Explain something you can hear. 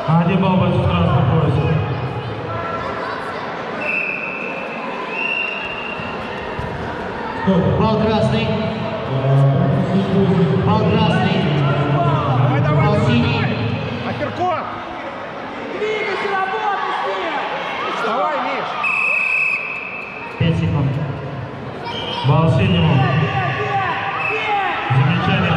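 A crowd of voices talks and calls out in a large echoing hall.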